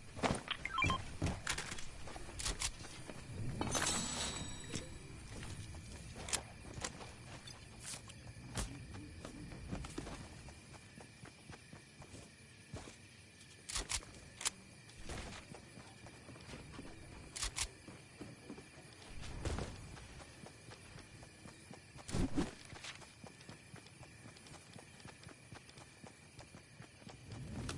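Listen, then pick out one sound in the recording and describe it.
Wooden walls snap into place with quick sharp clacks.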